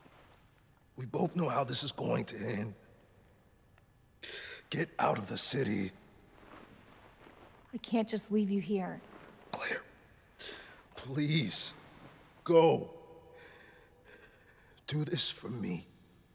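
A young man speaks softly up close.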